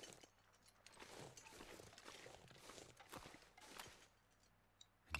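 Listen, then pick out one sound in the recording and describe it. A small stone skitters and clatters across ice.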